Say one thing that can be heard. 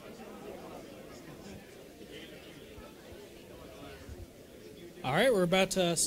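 An audience murmurs quietly.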